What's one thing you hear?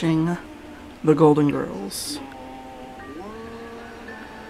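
A man sings through a television speaker.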